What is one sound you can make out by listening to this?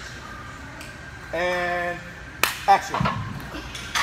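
Weight plates clank as they come off a leg press.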